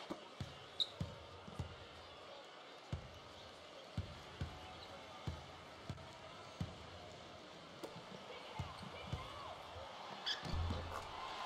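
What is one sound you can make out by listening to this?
A basketball bounces steadily on a hardwood court.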